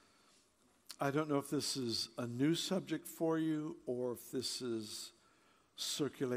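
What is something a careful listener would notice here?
An elderly man speaks with animation through a microphone in a large hall.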